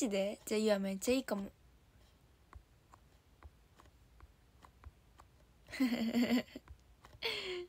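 A young woman speaks with animation, close to a phone microphone.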